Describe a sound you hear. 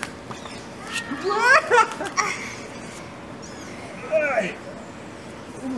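A boy shouts and laughs excitedly nearby.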